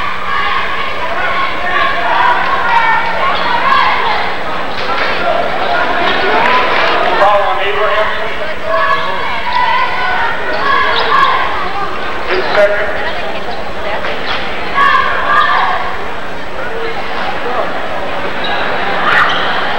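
A crowd of spectators chatters throughout a large echoing gym.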